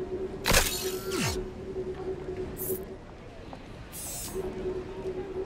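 Electronic menu swooshes sound in short bursts.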